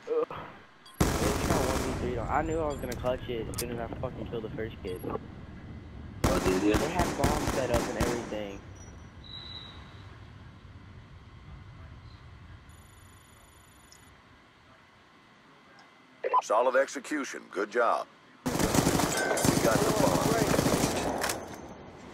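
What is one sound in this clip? Gunshots ring out in sharp, rapid bursts.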